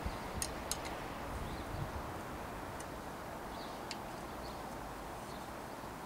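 A thin metal cable clicks softly against a bicycle brake.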